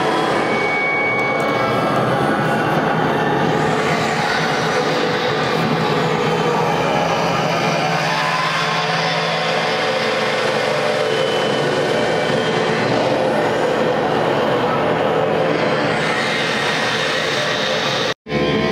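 A man sings into a microphone, heard through loudspeakers.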